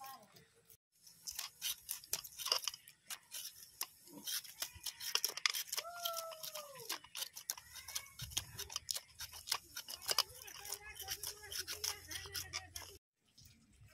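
A knife scrapes scales off fish with quick, rasping strokes.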